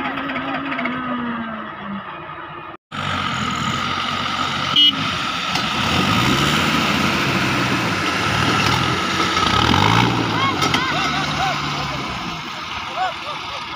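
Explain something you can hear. An off-road vehicle's engine revs and roars as it climbs a dirt slope.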